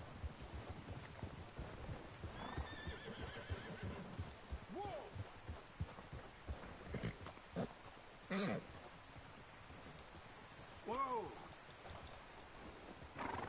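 Horses' hooves thud as they walk over snowy ground.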